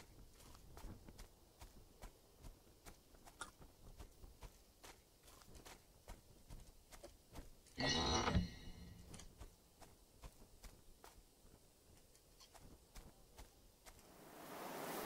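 Footsteps crunch steadily over dirt and grass.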